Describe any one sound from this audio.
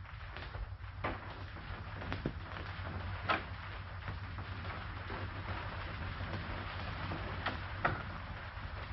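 Footsteps fall slowly on a hard floor.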